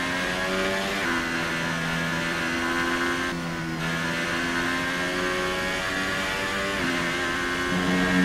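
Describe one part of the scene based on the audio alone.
A racing car engine screams at high revs, its pitch dropping briefly with each gear change.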